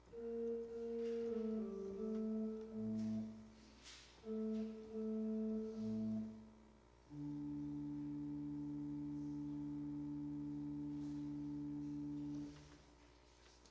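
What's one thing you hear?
A pipe organ plays a slow chord sequence that ends in a long held chord, echoing in a large hall.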